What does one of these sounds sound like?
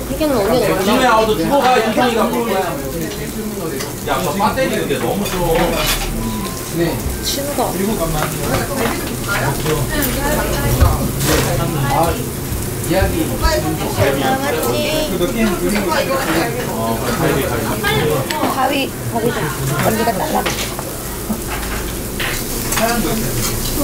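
Chopsticks and dishes clink now and then.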